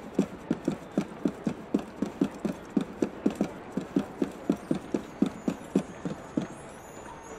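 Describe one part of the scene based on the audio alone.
Quick footsteps run across a roof.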